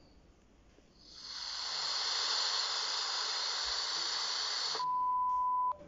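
A television hisses with loud static.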